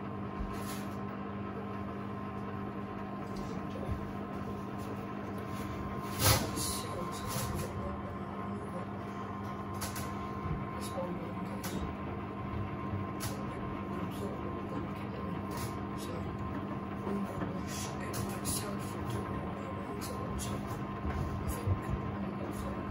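A washing machine drum turns with a steady low hum.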